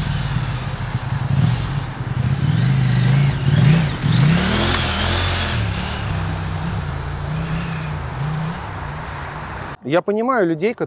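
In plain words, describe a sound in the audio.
A motorcycle engine revs and roars as it rides by.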